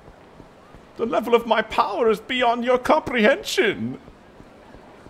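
A man yells and groans loudly.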